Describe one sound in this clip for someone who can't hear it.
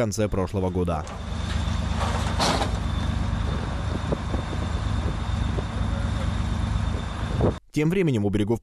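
A heavy tracked vehicle engine rumbles steadily close by.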